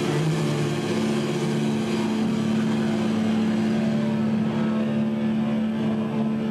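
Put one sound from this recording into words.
An electric bass guitar plays loud, distorted notes.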